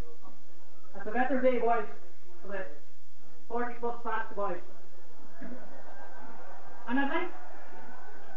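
A man speaks loudly into a microphone to a crowd, heard outdoors.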